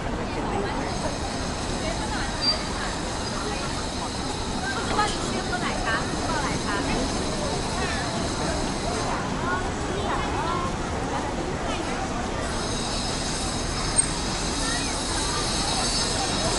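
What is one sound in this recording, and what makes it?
Footsteps shuffle on pavement.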